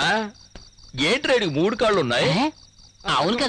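A man cries out and groans loudly in pain.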